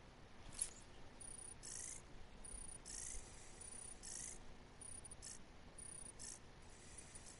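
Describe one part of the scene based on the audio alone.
Short electronic blips tick in quick bursts.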